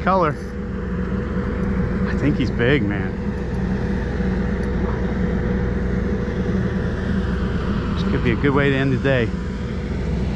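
A man speaks nearby with excitement.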